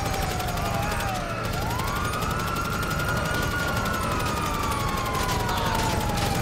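A police siren wails nearby, rising and falling in pitch.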